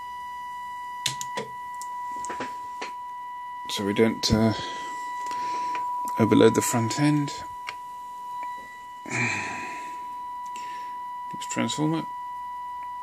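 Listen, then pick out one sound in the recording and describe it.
A radio receiver gives out a steady, high-pitched whistle.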